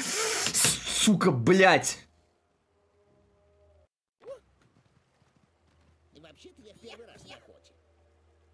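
A young man speaks with animation into a nearby microphone.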